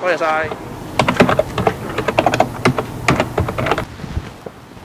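Computer keys click.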